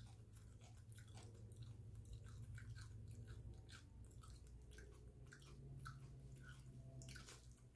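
A man bites and chews crunchy food close by.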